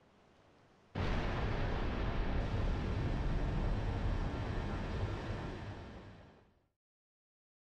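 A loud rushing roar of energy shoots upward and slowly fades away.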